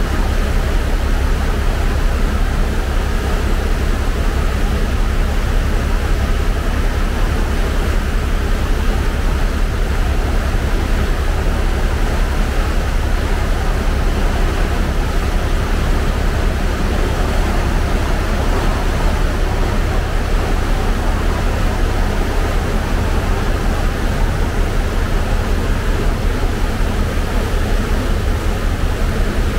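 A boat's wake churns and rushes behind the vessel.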